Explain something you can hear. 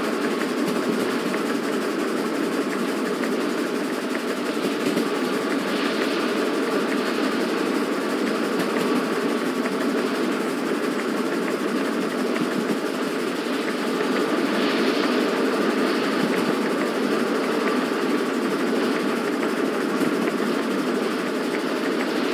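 A steam locomotive rumbles steadily along the track through an echoing tunnel.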